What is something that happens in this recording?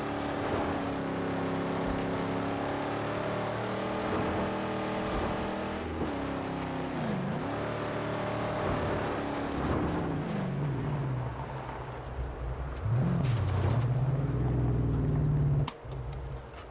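A car engine roars and revs over rough ground.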